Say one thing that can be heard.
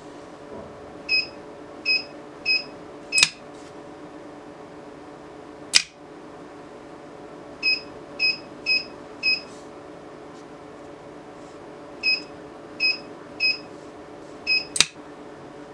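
An electronic keypad beeps in short, high blips as keys are pressed.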